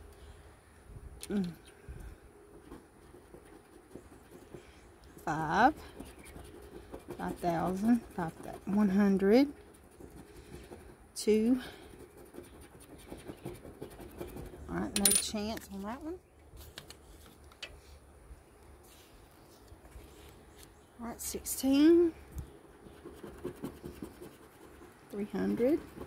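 A coin scratches across a scratch-off ticket.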